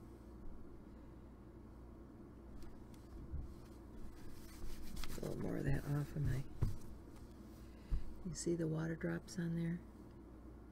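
Fingers lightly scrape and tap a stiff card on a table.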